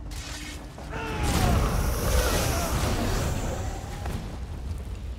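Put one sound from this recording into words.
Sword blows and hit effects clash in a short fight.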